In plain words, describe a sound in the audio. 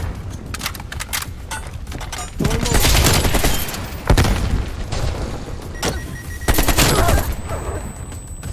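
Rapid bursts of automatic gunfire ring out close by.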